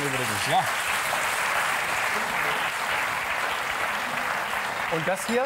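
A man talks with animation nearby.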